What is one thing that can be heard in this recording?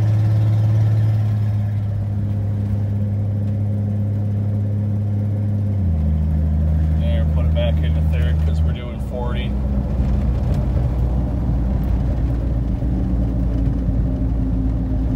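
A vehicle engine hums steadily, shifting pitch now and then.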